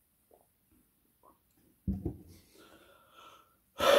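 A glass is set down on a table with a knock.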